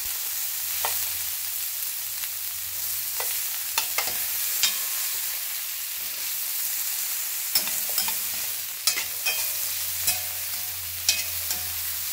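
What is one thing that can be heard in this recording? Metal tongs clink against a metal pan.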